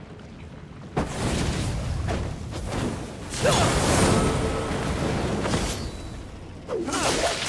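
A burst of fire whooshes and roars.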